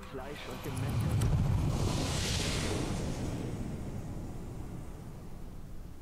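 A ghostly shimmering whoosh swells and slowly fades.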